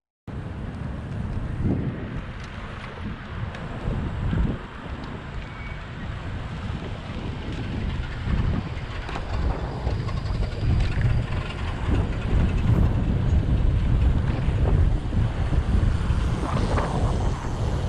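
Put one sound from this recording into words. Cars pass by on a nearby road.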